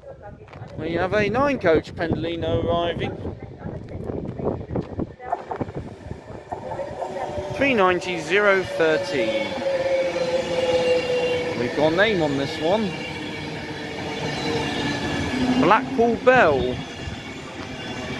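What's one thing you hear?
A high-speed train approaches and roars past close by.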